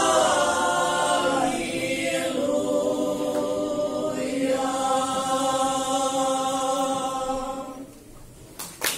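A choir of women sings together in a large echoing hall.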